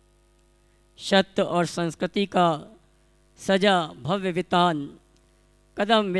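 A man speaks calmly and steadily into a microphone, in short phrases with pauses.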